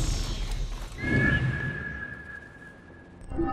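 An eagle screeches overhead.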